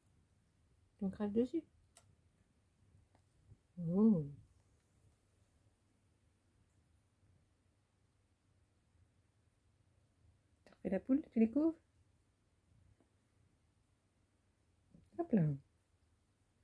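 A cat meows loudly close by, several times.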